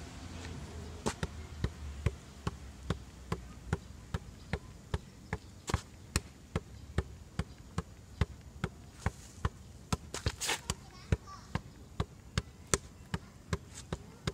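A rubber ball thuds again and again as it is kicked against a wall.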